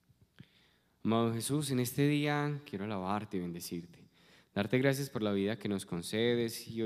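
A man sings a chant into a close microphone.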